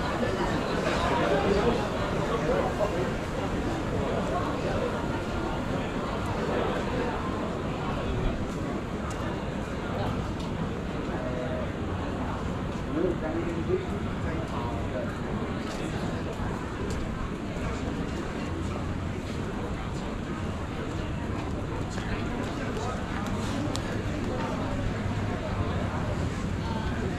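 Voices of men and women chatter outdoors.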